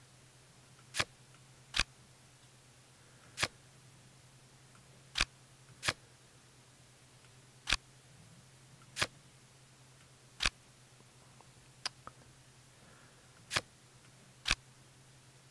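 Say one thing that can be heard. Short, sharp clicks sound one at a time as cards are moved.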